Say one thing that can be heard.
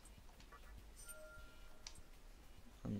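A short electronic chime plays.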